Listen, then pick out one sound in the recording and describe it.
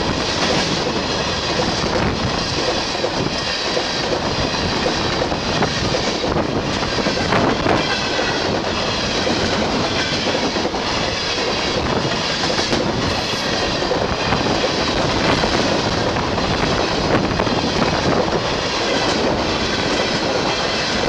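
A freight train rushes past close by at speed.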